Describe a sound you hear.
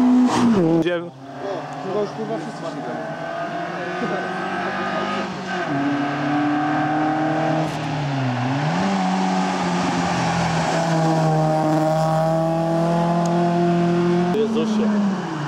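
A rally car engine screams, shifting gears as it speeds past.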